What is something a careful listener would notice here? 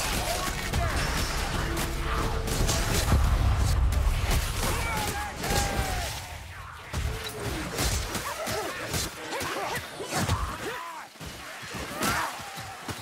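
Creatures squeal and screech in a fight.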